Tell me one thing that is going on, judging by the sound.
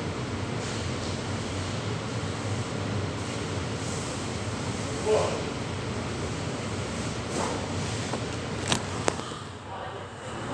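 A cooling unit hums steadily.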